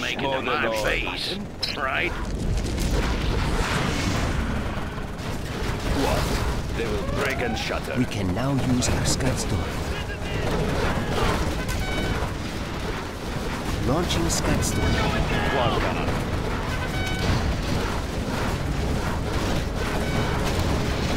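Explosions boom and rumble as a battle rages.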